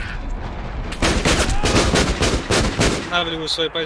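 A shell explodes with a heavy boom.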